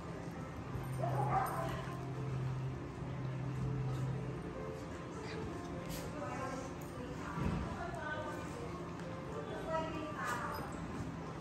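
Small dogs growl and yip playfully at close range.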